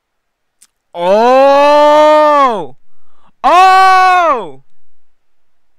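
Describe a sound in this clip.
A young man exclaims in surprise, close to a microphone.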